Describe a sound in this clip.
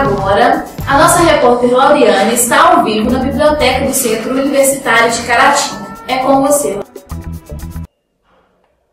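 A young woman speaks clearly into a microphone.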